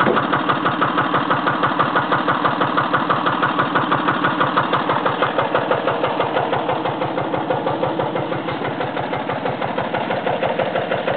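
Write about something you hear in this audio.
A small engine runs with a fast, steady chugging.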